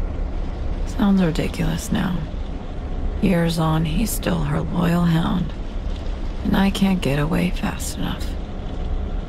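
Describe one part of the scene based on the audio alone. A woman speaks quietly and calmly, close by.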